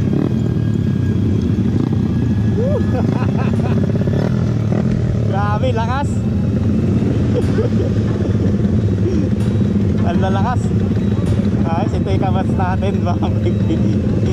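Motorcycle engines idle and rumble loudly close by.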